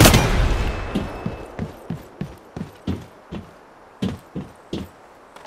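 Footsteps thud steadily on a hard surface.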